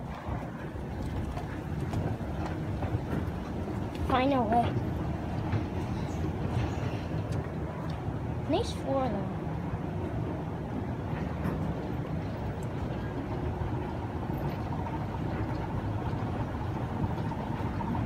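An escalator hums and rumbles steadily.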